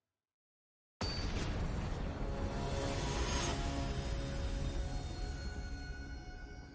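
A loud game sound effect booms and then slowly fades.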